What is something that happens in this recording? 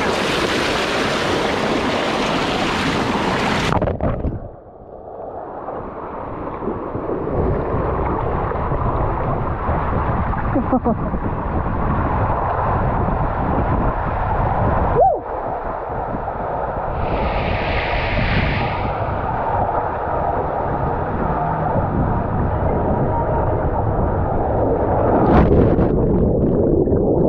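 Water rushes and gurgles close by, heard muffled for most of the time.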